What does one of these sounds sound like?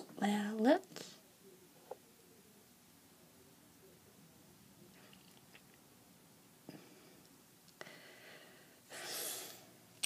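A young woman sucks and slurps through a straw.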